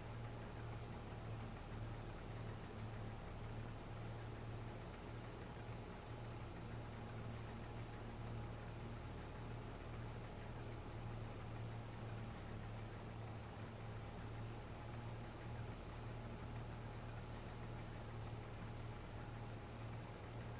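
A combine harvester engine drones steadily from inside the cab.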